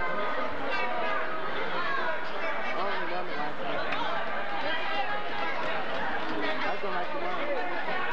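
A large crowd chatters and calls out in an echoing gym.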